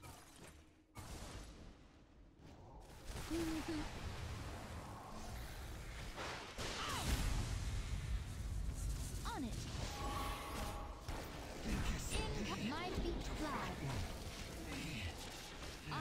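Game spells crackle and explode in a busy battle.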